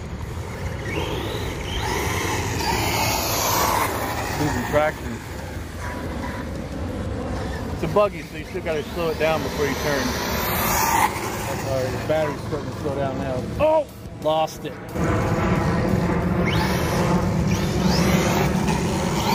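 A toy car's electric motor whines as it speeds over pavement.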